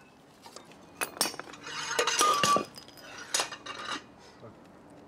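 A heavy metal drum scrapes and clanks as it is pulled off.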